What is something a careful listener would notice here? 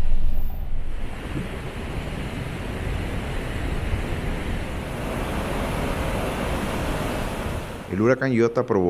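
Water roars as it pours over a spillway.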